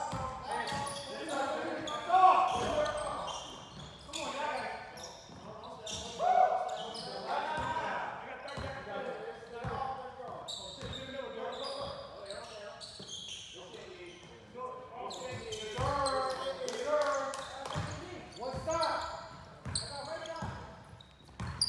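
Men call out to each other in an echoing gym.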